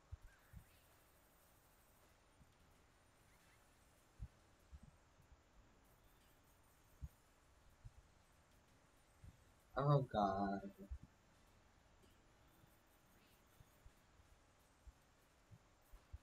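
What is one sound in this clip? Coins clink and chime as they are collected.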